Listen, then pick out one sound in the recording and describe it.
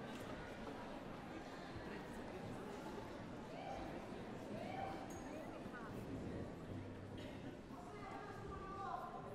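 A large orchestra plays loudly in a big concert hall.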